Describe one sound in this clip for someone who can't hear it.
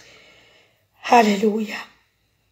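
An elderly woman speaks briefly through a headset microphone, as on an online call.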